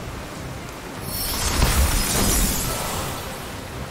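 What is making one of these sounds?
A glassy magical burst crashes and shimmers away.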